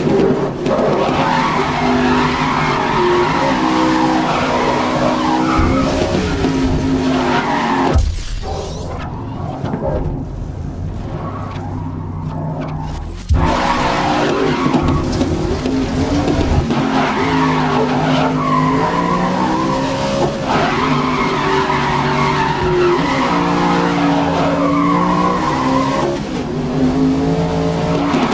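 A race car engine roars loudly, rising and falling in pitch as it shifts gears.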